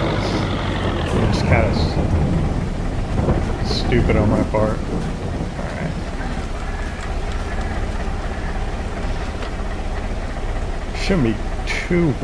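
Rain patters steadily outdoors.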